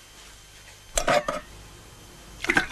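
Water sloshes and splashes in a metal basin.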